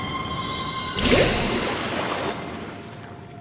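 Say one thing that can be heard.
A magic blast bursts with a loud whoosh and fades.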